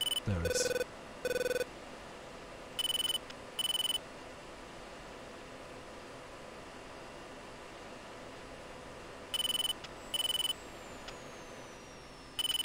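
A cockpit warning tone beeps sharply in repeated pairs.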